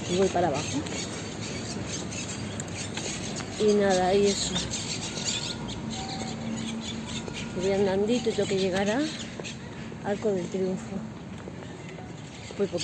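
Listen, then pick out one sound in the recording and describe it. A middle-aged woman talks close up, in short bursts.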